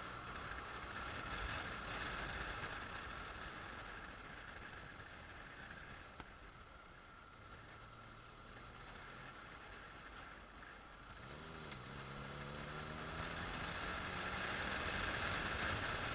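Tyres roll over asphalt with a steady rumbling hiss.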